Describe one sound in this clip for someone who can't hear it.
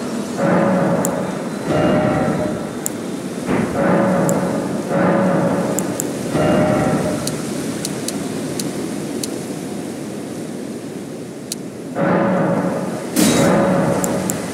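Short soft menu clicks tick now and then.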